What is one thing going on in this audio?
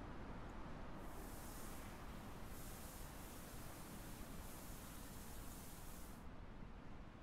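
Sand pours out of a sack with a soft hiss.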